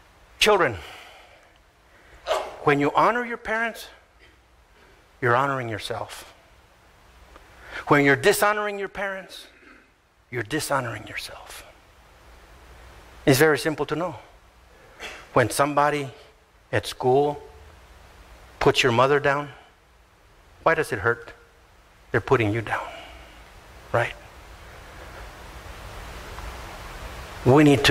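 An older man speaks with animation into a microphone, in short bursts with pauses.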